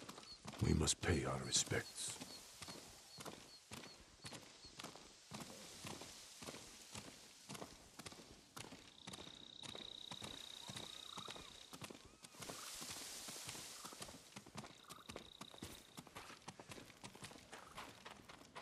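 Footsteps crunch on a path.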